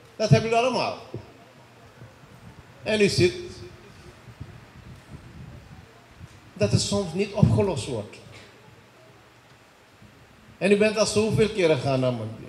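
A man speaks into a microphone over loudspeakers, in short bursts with pauses.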